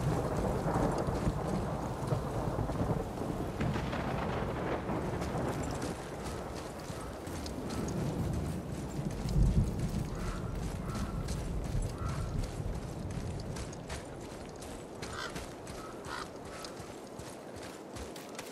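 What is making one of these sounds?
Footsteps crunch on a forest path.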